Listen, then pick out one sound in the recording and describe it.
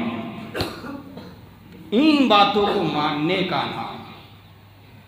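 A middle-aged man speaks with animation into a microphone in an echoing room.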